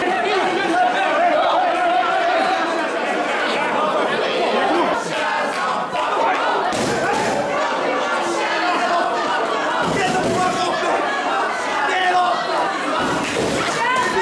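Bodies thud and slap against each other in a brawl.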